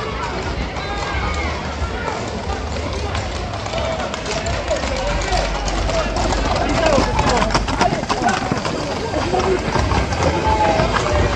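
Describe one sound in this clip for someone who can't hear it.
A crowd of people shouts and calls out excitedly outdoors.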